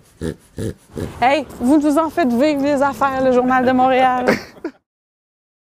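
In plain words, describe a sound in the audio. A young woman speaks with animation, close by.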